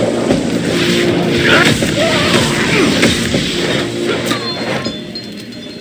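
Electric blasts crackle and burst loudly.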